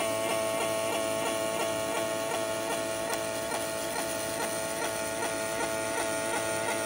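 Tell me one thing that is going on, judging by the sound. A machine whines with a steady hum.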